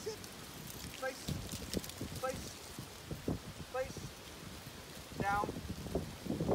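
A man speaks short, quiet words to a dog.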